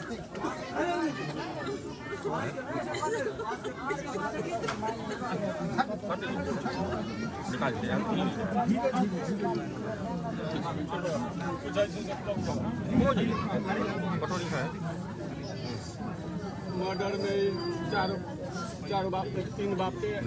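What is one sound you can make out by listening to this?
A crowd murmurs and talks around them.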